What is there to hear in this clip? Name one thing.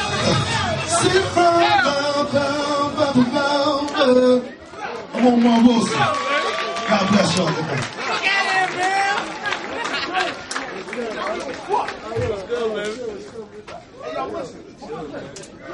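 A man raps loudly into a microphone through loudspeakers.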